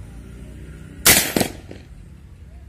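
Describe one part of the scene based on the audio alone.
An air rifle fires with a sharp crack.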